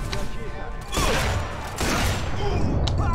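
Gunshots crack loudly.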